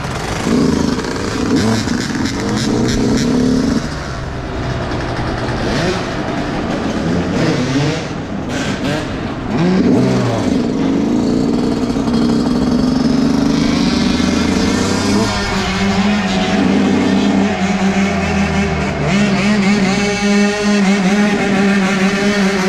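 A dirt bike engine revs and buzzes up close.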